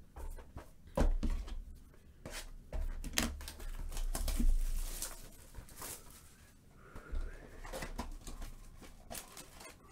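Cardboard scrapes and rustles as a box is opened.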